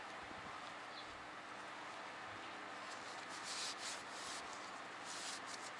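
A cloth rustles as it wipes metal.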